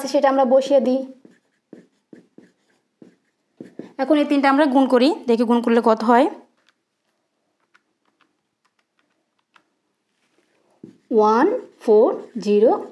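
A young woman speaks calmly and clearly close to a microphone.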